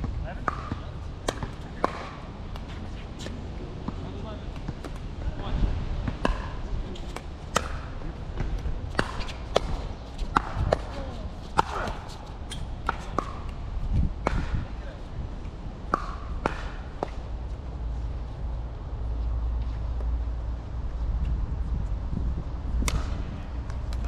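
Paddles hit plastic balls with sharp hollow pops across several courts.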